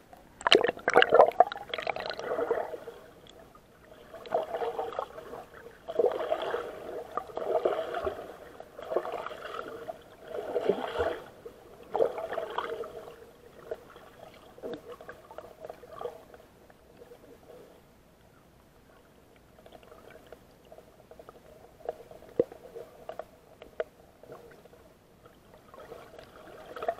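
Water sloshes and gurgles in bursts, heard close up from underwater.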